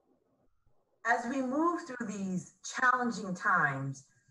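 A middle-aged woman speaks calmly and warmly, close by.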